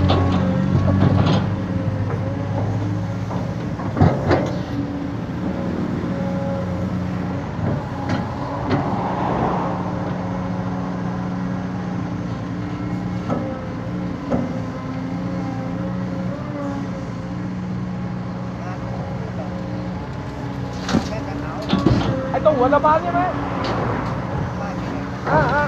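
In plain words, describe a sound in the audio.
An excavator's diesel engine rumbles and whines steadily close by.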